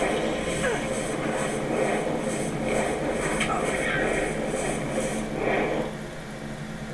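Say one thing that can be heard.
Fire spells crackle and roar in rapid bursts.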